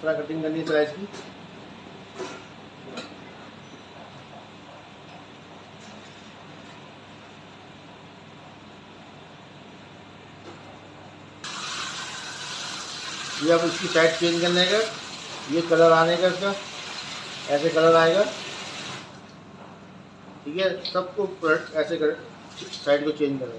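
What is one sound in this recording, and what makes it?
Hot oil sizzles steadily in a pan.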